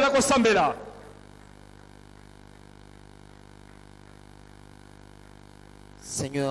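A man speaks through a microphone and loudspeakers, with pauses.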